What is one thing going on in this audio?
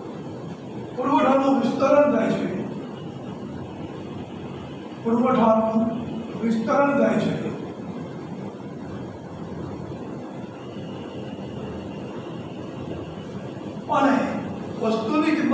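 A middle-aged man speaks calmly nearby in short bursts.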